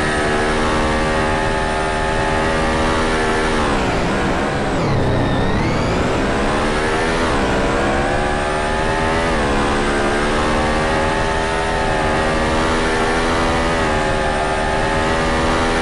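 A Formula-style racing car engine screams at high revs, dropping in pitch while braking into a corner and then climbing again through upshifts.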